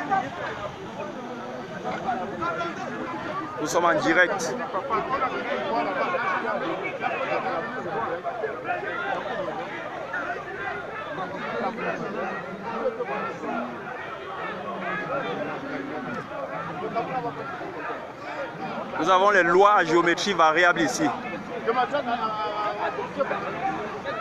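A crowd of men talk and call out loudly nearby, outdoors.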